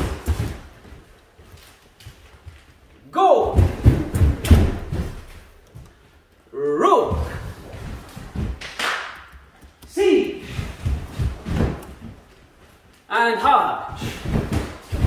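Bare feet thump and slide on a wooden floor.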